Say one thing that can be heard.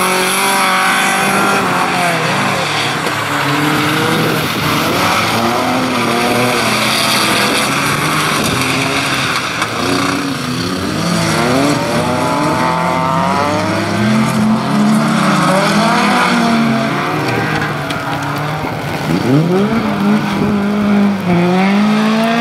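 Car engines rev loudly, rising and falling as the cars race.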